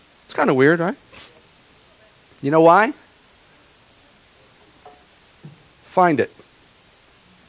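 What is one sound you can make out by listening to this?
A middle-aged man speaks with emphasis into a microphone, pausing between short phrases.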